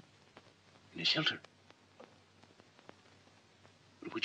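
A man speaks a few short words close by.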